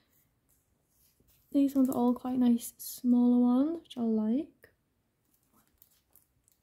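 A stiff sheet of card rustles softly as hands shift it.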